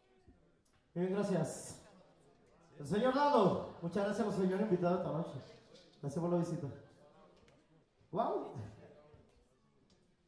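A man speaks loudly into a microphone through loudspeakers, in short bursts.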